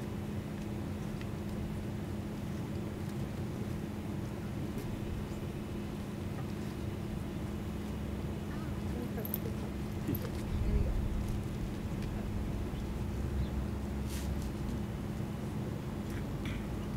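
A young woman talks quietly close by.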